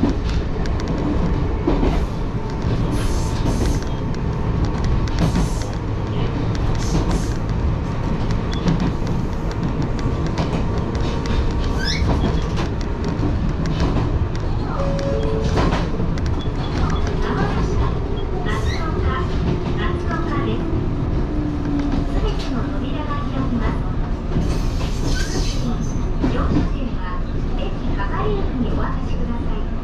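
A train rumbles steadily along the rails, heard from inside the carriage.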